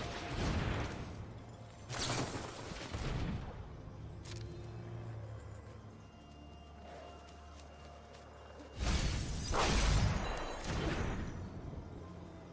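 Magical whooshing sound effects sweep in short bursts.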